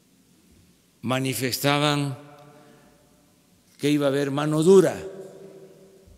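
An elderly man speaks calmly and deliberately into a microphone in a large echoing room.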